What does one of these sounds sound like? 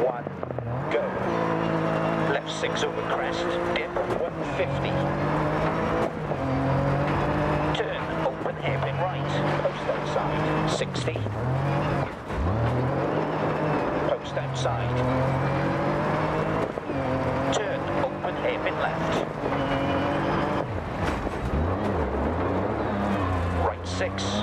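A rally car engine roars, revving up and down through gear changes.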